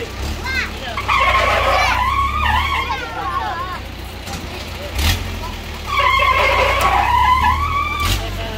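Children scream and shriek on a swinging fairground ride.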